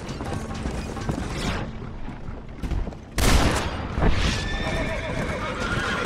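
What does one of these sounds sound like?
Wooden wagon wheels rumble and rattle over a dirt track.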